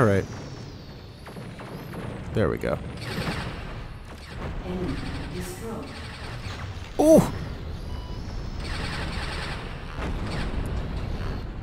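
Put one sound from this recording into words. Explosions boom and blasts crackle.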